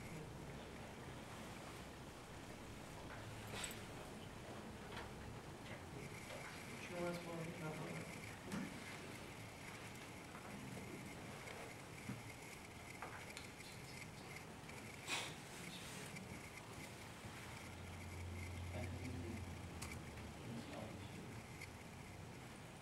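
A man speaks quietly, heard from a distance in a large room.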